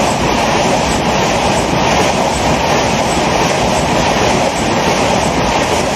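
A diesel locomotive engine rumbles loudly nearby.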